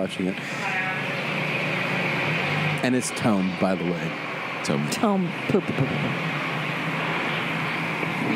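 A woman talks into a close microphone.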